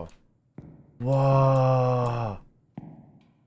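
A young man shouts with animation close to a microphone.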